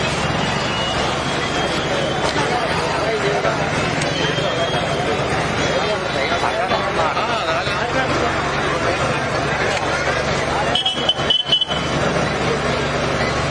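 A large outdoor crowd chatters loudly all around.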